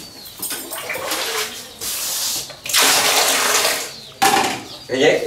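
Water splashes as it is scooped from a tank.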